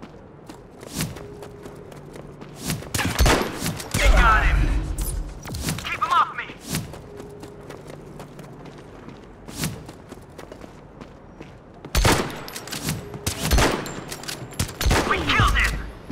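A rifle fires loud single shots, each with a short echo.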